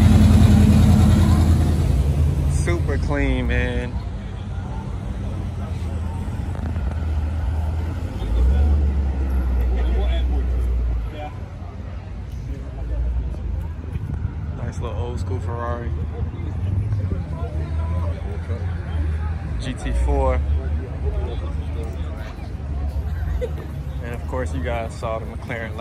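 A crowd of men and women chat nearby.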